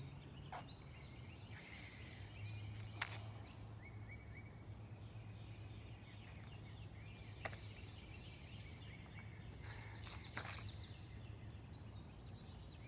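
Dry mulch rustles and crunches under a small child's feet and hands.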